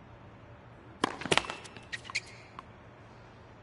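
A tennis ball is struck with a racket several times.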